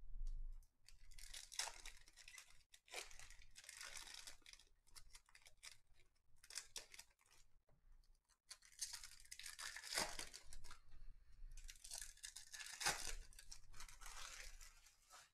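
Foil card wrappers crinkle and rustle as they are torn open.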